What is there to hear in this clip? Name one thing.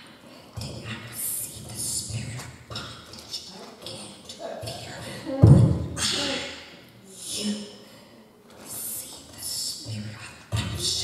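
An elderly woman speaks through a microphone in a large echoing room.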